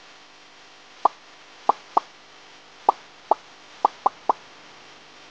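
Short bright pops sound in quick bursts as a game ball collects orbs.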